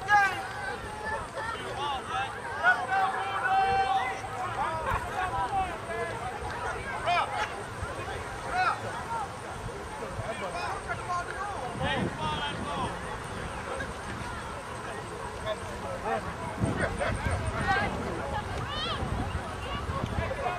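A crowd of spectators chatters and calls out nearby outdoors.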